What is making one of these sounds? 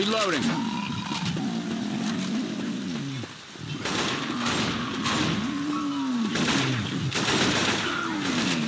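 A video game rifle fires in bursts.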